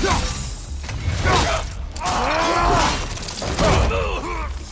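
An axe strikes with heavy, metallic blows.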